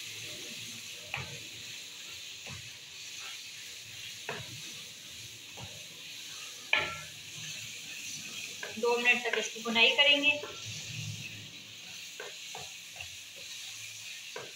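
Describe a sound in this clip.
A wooden spatula scrapes and knocks against a metal pan while stirring.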